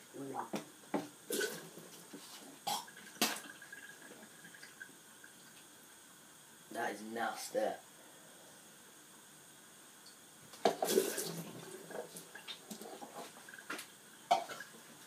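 Dishes clink and clatter.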